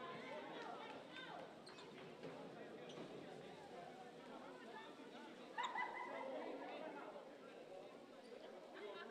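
A crowd murmurs and chatters in a large echoing gym.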